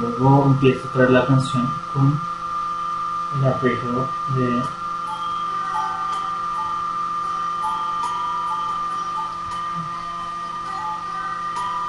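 An electric guitar plays quiet, picked notes.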